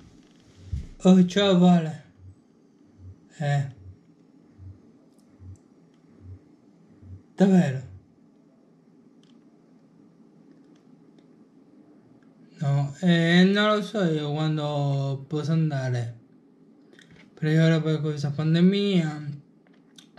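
A man talks on a phone nearby, calmly, in short bursts with pauses.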